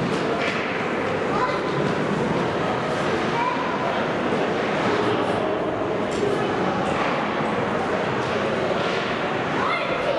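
Spectators chatter and shout in a large echoing rink.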